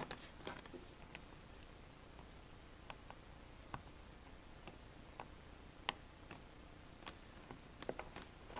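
Small tools tap and scrape against a hard plastic surface.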